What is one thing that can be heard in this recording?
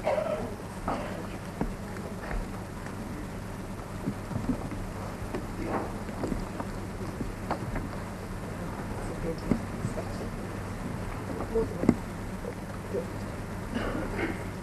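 Women murmur and chat softly nearby.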